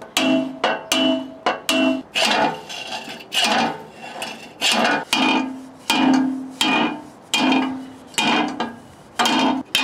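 A hammer strikes a steel bar with sharp ringing clangs.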